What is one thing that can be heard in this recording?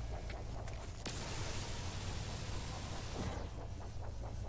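A mining laser hisses steadily.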